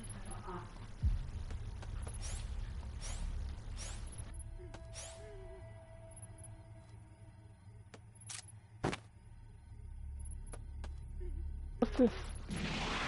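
Footsteps tap on stone tiles.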